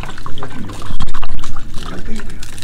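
Water pours from a plastic bottle into a cup.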